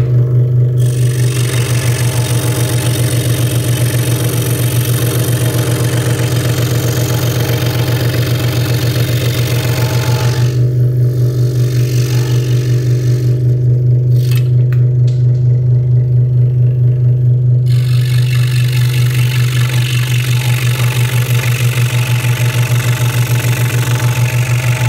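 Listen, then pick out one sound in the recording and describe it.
A scroll saw blade rasps as it cuts through wood.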